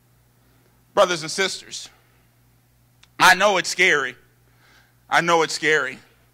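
A man speaks with animation through a microphone, in short bursts.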